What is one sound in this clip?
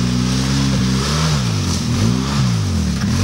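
An all-terrain vehicle engine revs up and down repeatedly.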